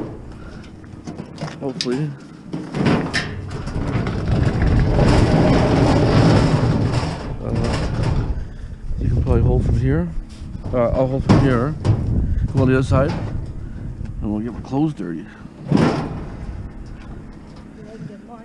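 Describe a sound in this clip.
A metal grill rattles and clanks as it is lifted.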